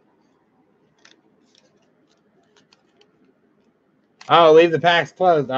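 A foil wrapper crinkles as hands tear it open.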